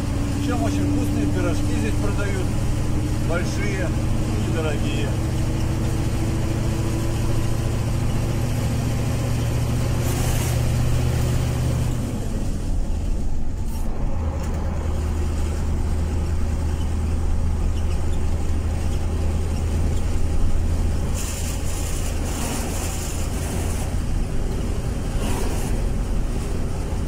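A vehicle engine hums steadily from inside a moving cab.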